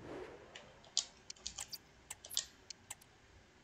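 Short soft game menu clicks tick several times.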